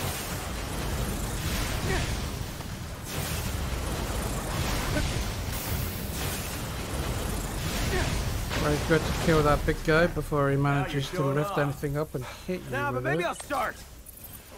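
Fiery magic blasts crackle and boom in quick bursts.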